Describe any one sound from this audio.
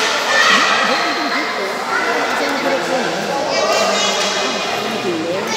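Men talk and call out in a large echoing hall.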